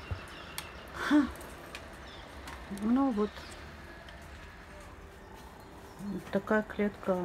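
A parrot calls out nearby in short, squawking whistles.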